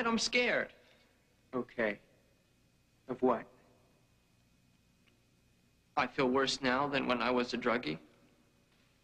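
A young man speaks earnestly close by.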